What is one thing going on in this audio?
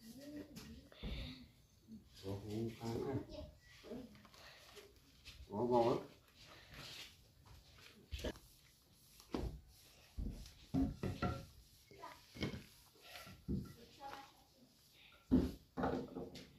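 Hands thump and knock against a wooden door.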